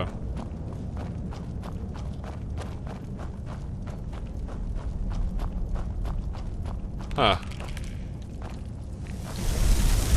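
Footsteps crunch steadily on stone.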